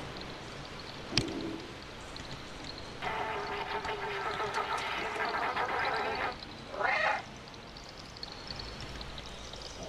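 A cat's paws patter softly on a metal roof.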